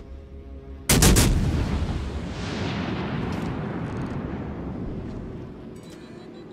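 Heavy naval guns fire with a loud boom that rumbles away.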